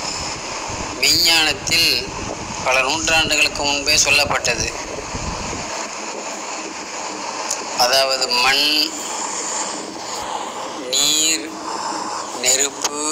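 A middle-aged man speaks close to the microphone in short bursts, with pauses.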